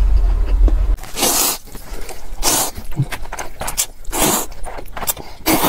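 A man slurps noodles loudly close up.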